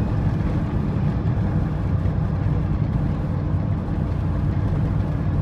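Tyres crunch and rattle over a rough dirt road.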